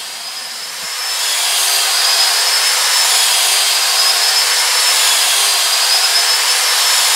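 A power tool whirs steadily.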